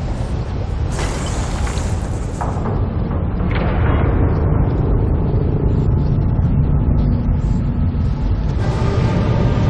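Heavy stone blocks grind and rumble as they shift into place.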